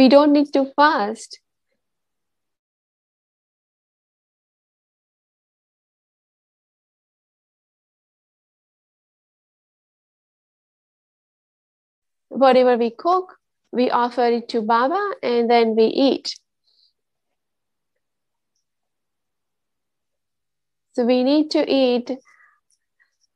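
A woman speaks calmly over an online call, with long pauses.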